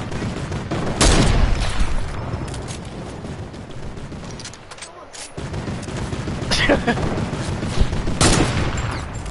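A rifle fires loud, booming shots.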